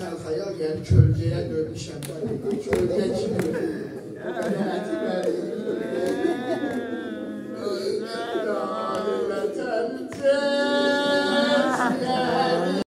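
A man chants loudly and mournfully through a microphone, his voice rising and falling.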